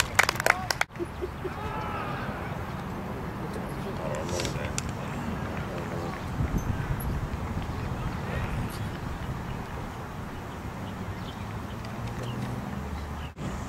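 An elderly man speaks calmly into a microphone over loudspeakers outdoors.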